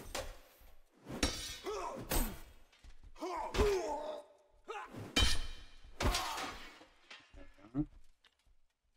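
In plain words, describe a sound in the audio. Swords clash and ring in a close fight.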